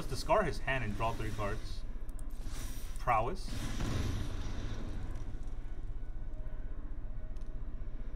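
A magical whoosh sounds as a spell is cast.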